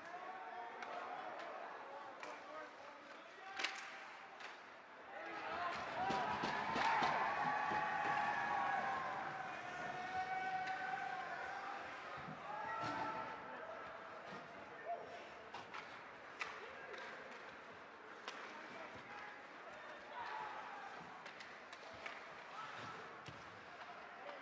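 Hockey sticks and a puck clack sharply now and then.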